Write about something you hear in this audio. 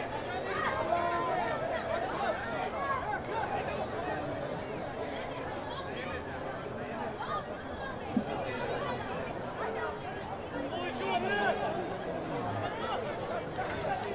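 Men shout calls to each other outdoors, some distance away.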